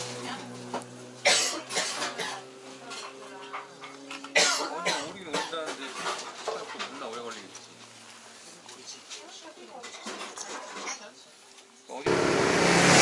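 A young man blows on hot soup and slurps it close up.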